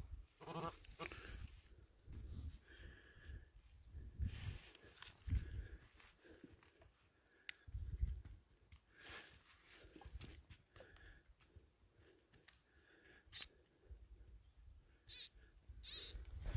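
A small trowel scrapes and digs into dry soil.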